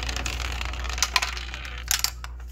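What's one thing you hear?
A metal flap clicks open.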